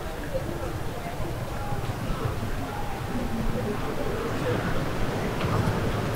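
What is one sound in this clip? Waves break and wash onto a rocky shore.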